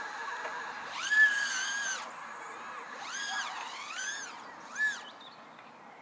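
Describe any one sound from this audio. An electric skateboard motor whines, rising and falling in pitch.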